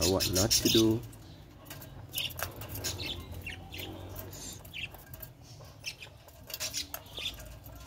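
Quails shuffle and scratch about in a wire cage.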